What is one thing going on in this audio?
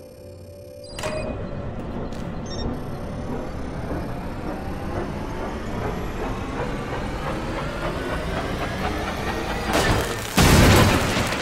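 A machine hums and whirs with a steadily rising pitch.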